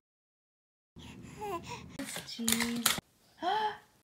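A baby coos and babbles close by.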